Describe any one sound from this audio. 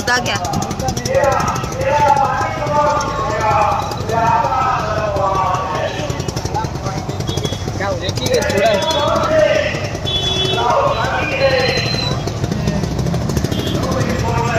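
A crowd of men chatters and shouts nearby, outdoors.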